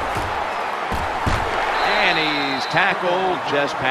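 Football players collide with dull thuds in a tackle.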